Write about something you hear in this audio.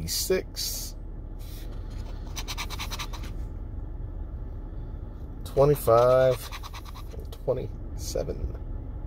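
A coin scratches across a paper card in short bursts.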